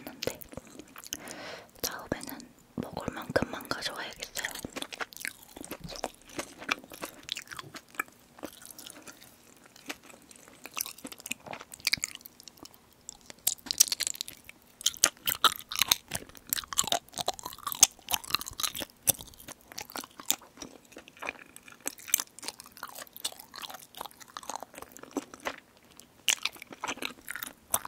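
A young woman chews food close to a microphone with soft wet smacking sounds.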